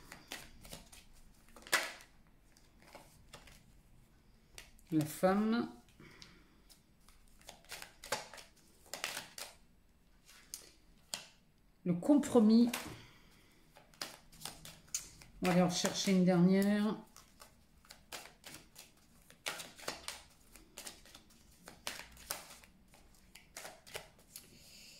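Playing cards shuffle and slap together in quick soft flicks.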